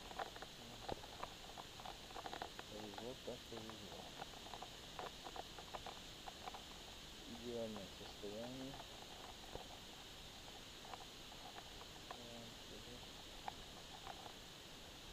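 Gloved fingers rub and crumble dry soil with soft crackles.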